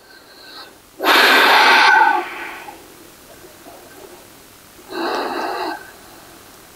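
A woman breathes out deeply and slowly.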